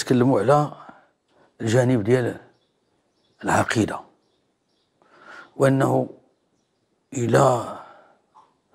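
An elderly man speaks slowly and calmly into a close microphone, in short phrases with pauses.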